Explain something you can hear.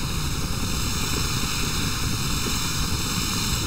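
Fire crackles and roars.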